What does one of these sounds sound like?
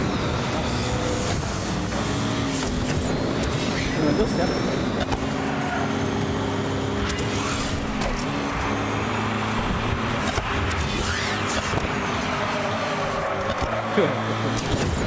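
Toy car engines hum and whine steadily.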